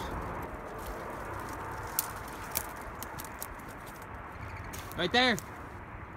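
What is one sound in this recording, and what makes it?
Footsteps crunch and rustle through dry brush.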